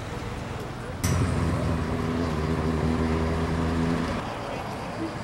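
A car engine hums as the car drives slowly past.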